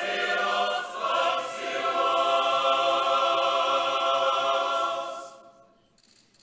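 A choir of men sings a sustained chant, echoing in a large hall.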